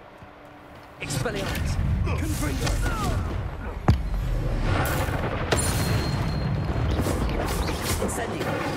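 Magic spells crackle and blast during a fight.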